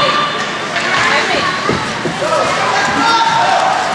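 A hockey stick smacks the puck.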